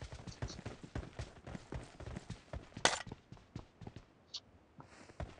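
Quick footsteps thud on dirt.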